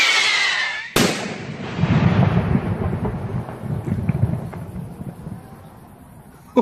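A firework bursts with a loud bang that rumbles and echoes away.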